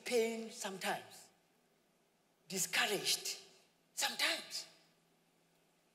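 A young man speaks with animation through a microphone in an echoing hall.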